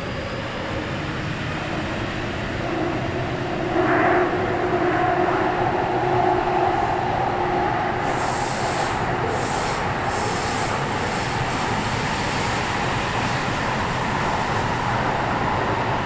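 A train rumbles and hums steadily along the track.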